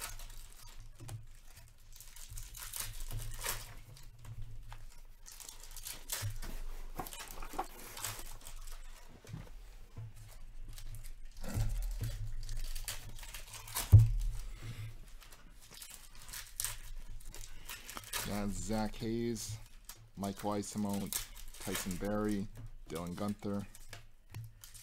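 Cards rustle and slap as hands shuffle through a stack.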